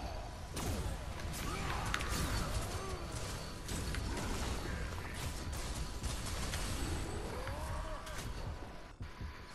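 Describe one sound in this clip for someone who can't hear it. Magical blasts crackle and whoosh during a fight.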